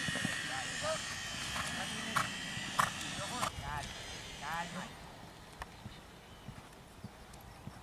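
A horse canters with hooves thudding on sand.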